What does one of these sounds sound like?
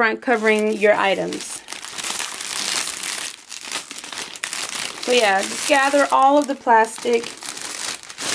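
Plastic wrap crinkles and rustles under a hand.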